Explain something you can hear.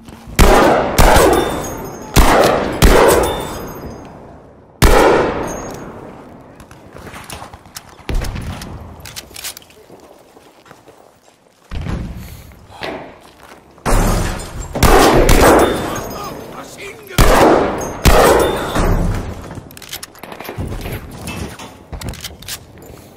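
A rifle bolt clicks as it is worked between shots.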